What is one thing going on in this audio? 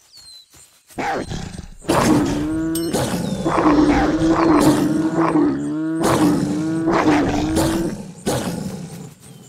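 Wolves snarl and growl while fighting.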